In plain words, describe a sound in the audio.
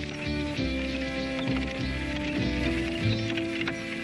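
Mules' hooves clop on a dirt road.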